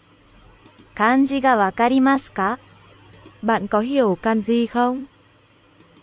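A synthetic computer voice reads out a short phrase through a loudspeaker.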